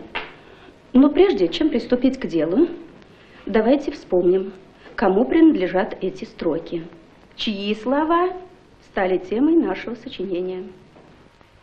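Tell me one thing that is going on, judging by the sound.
A middle-aged woman speaks clearly to a class.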